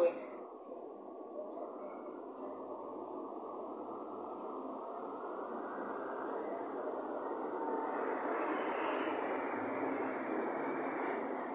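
A young woman blows a steady, breathy rush of air through her cupped hands close by, slowly growing louder.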